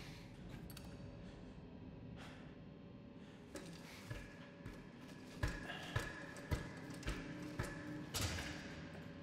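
Footsteps clank on a metal ladder.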